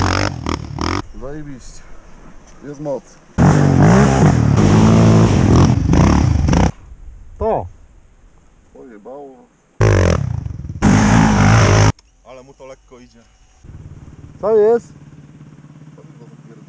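Quad bike engines rev and whine in the distance.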